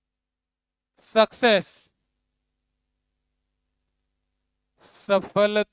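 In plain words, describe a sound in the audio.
A man speaks in short bursts.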